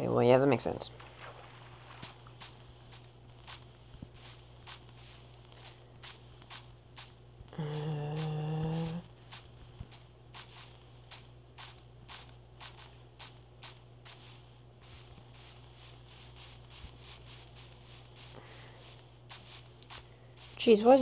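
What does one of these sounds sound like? Footsteps crunch quickly over grass and dirt.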